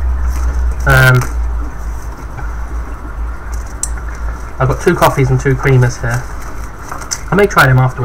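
Plastic wrappers rustle and crinkle.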